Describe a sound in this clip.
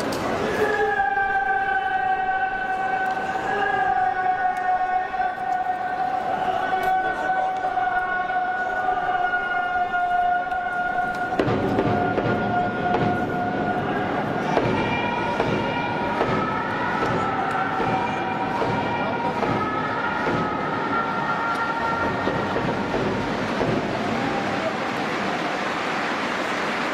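A large crowd chants and cheers in a huge echoing hall.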